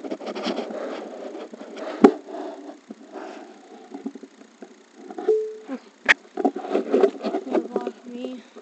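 Fabric rubs and brushes close against the microphone.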